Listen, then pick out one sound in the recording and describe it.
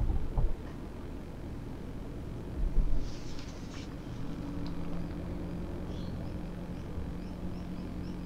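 Tyres roll on a paved road.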